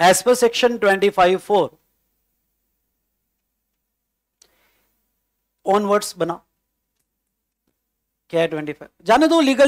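A middle-aged man lectures with animation into a close microphone, pausing between phrases.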